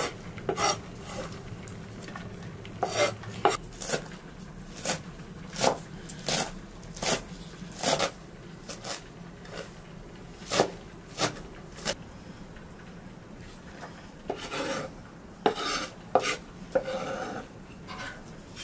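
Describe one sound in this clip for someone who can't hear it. A knife chops greens on a board with sharp, quick taps.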